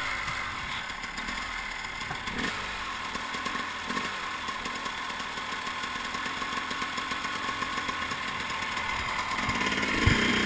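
A dirt bike engine runs.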